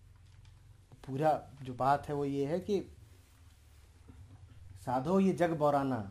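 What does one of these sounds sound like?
A man speaks calmly and closely, in short phrases.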